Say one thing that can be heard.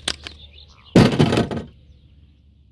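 A metal car hood clunks as it is lifted off.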